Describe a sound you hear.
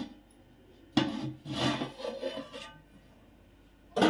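A metal lid scrapes and clanks as it is lifted off a pot.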